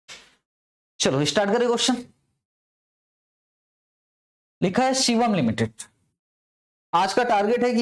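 A man speaks clearly into a close microphone, explaining in bursts with pauses.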